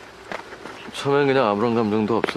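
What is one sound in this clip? A young man answers quietly, close by.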